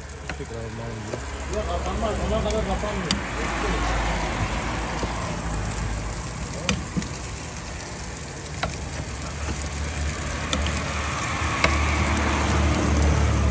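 Meat sizzles on a hot griddle.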